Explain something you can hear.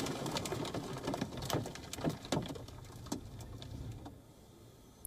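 A car engine hums while driving along a road.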